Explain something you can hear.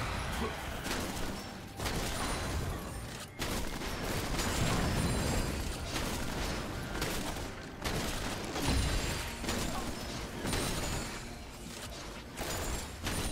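Magic blasts burst and crackle in quick succession.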